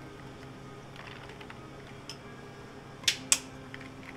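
Liquid pours into a glass with ice.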